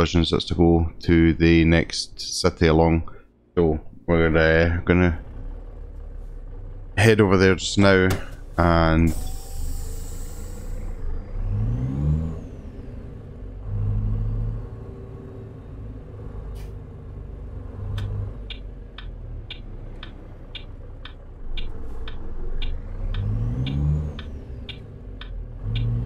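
A truck engine rumbles low and revs up now and then.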